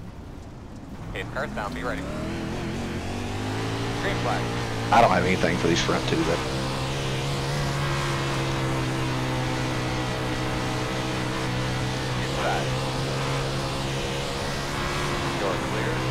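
A racing engine revs up and roars steadily at high speed.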